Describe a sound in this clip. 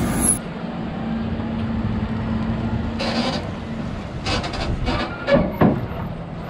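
A feed wagon rolls slowly past on concrete.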